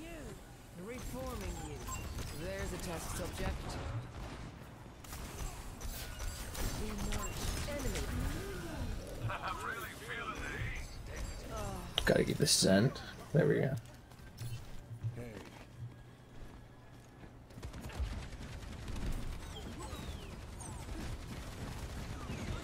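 Gunfire and game effects crackle and bang.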